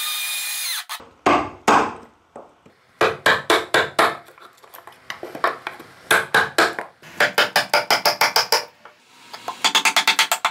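A chisel chops and splits out wood.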